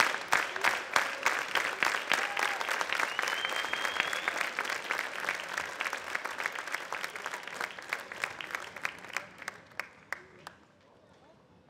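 A large audience applauds in an echoing hall, then dies away.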